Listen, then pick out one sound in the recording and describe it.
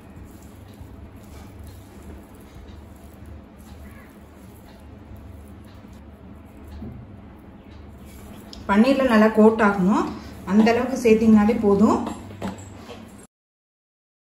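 Hands squish and toss soft food in a glass bowl.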